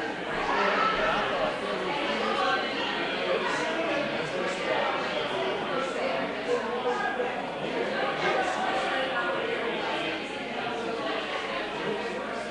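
A man speaks steadily through a microphone in a large echoing hall.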